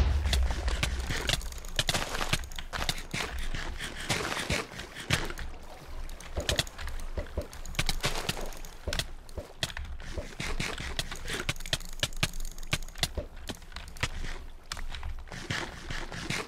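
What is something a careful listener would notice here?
Keys clatter rapidly on a keyboard.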